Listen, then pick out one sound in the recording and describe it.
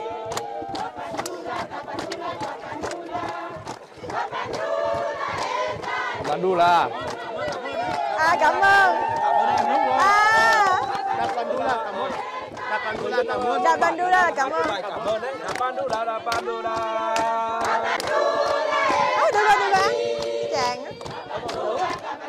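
A large crowd of women and men sing and chatter loudly outdoors.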